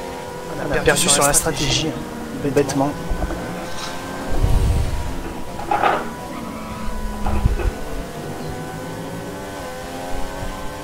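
Racing car engines whine at high revs, rising and falling as the cars accelerate and shift gears.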